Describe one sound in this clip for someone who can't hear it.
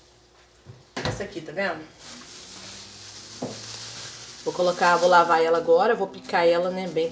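A woman talks calmly and close by.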